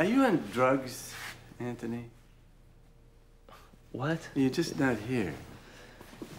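An elderly man speaks with animation nearby.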